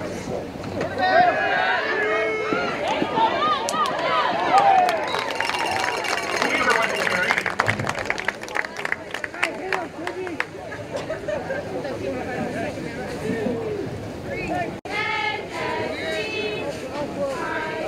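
Players on the sideline shout with excitement.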